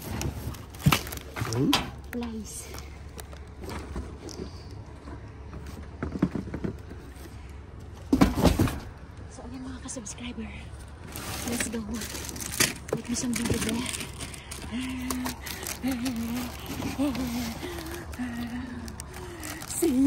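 Cardboard boxes rustle and scrape as they are shifted.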